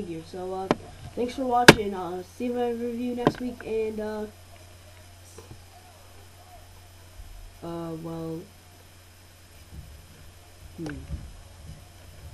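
A boy talks close to a microphone, in short bursts with pauses.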